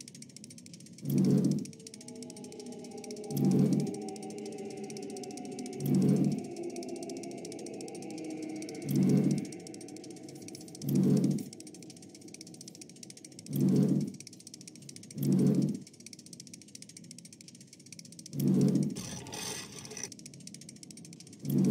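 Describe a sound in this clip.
Heavy metal magnets clunk into place one after another.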